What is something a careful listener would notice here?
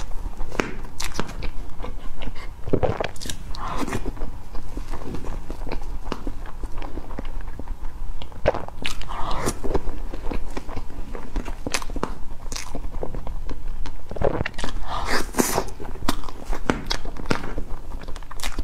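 A spoon scrapes and scoops into soft cream cake.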